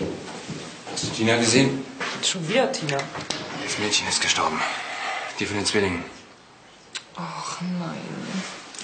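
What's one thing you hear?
A woman speaks tensely nearby.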